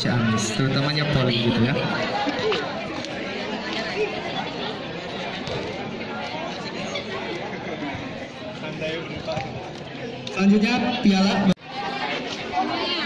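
A crowd of young people chatters and talks nearby outdoors.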